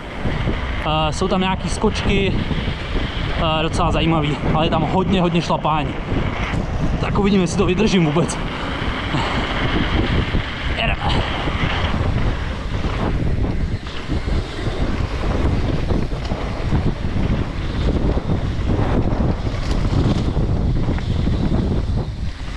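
Wind rushes past as a rider speeds downhill.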